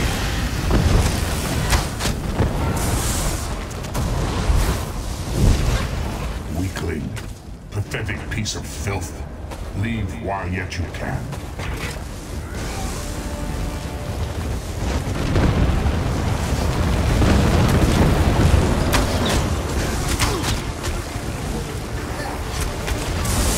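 Bowstrings twang as arrows are loosed.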